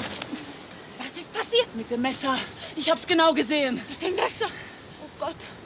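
A second woman answers in a loud, upset voice.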